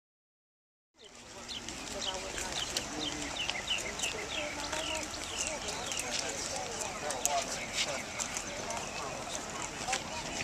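Footsteps shuffle on pavement as a group walks.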